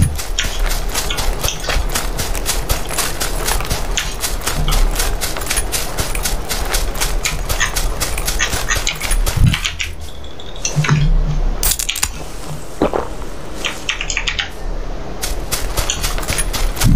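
Quick footsteps run through dry grass.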